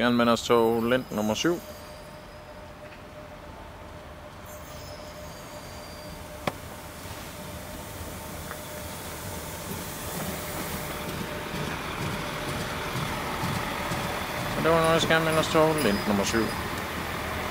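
A train horn blares in short loud blasts.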